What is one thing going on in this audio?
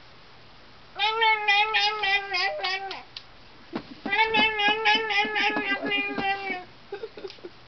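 A little girl sings in a high, bright voice close by.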